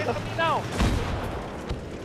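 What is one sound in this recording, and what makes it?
A gunshot cracks in the distance.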